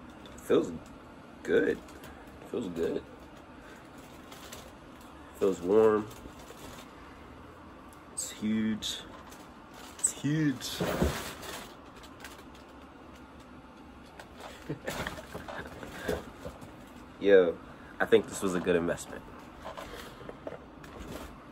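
Fabric rustles as a jacket is handled.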